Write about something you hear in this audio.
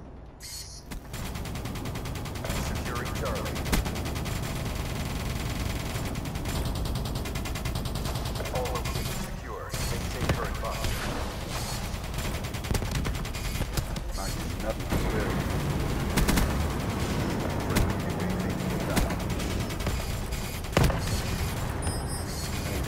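Heavy guns fire in rapid, booming bursts.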